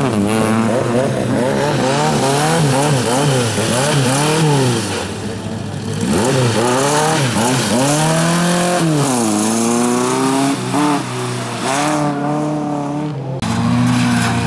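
A rally car engine revs hard and rises and falls in pitch as the car slides through a bend.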